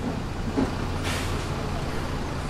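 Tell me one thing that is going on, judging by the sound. A bus door closes with a hiss of air.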